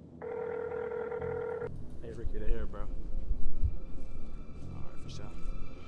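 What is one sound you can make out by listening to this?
A young man talks into a phone.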